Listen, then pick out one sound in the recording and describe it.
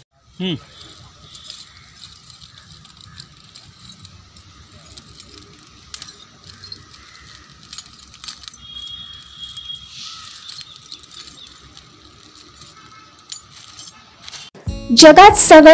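Broken glass crunches underfoot as a man treads on it.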